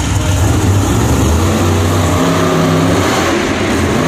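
A monster truck crushes cars with a metal crunch.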